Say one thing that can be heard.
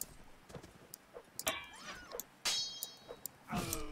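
Steel blades clash and ring in a sword fight.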